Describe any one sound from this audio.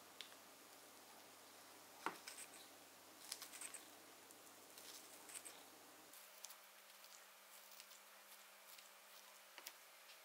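Scissors snip through a dried fruit in short crisp cuts.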